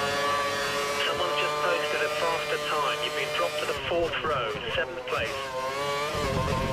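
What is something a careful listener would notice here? A racing car engine snarls and crackles as it quickly shifts down for a corner.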